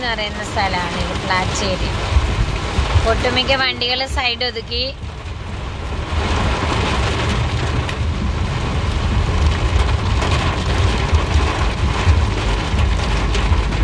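Heavy rain pounds hard on a car's windscreen.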